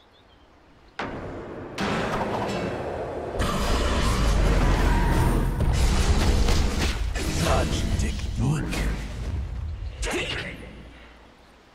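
Magic blasts and weapon blows clash loudly in a hectic fight.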